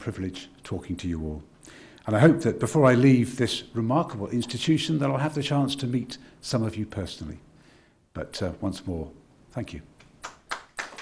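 An elderly man speaks into a microphone, pausing between phrases.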